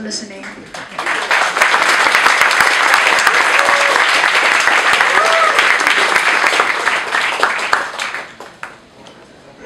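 An audience claps and applauds loudly, then the clapping dies away.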